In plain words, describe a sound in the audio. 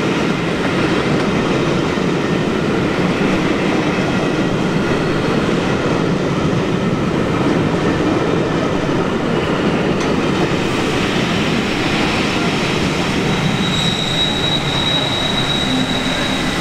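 A passenger train rumbles and clatters past on the rails.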